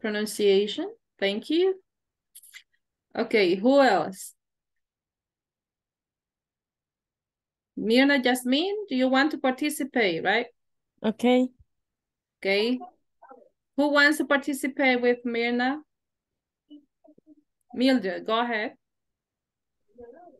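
A woman speaks calmly and clearly over an online call, pausing between phrases.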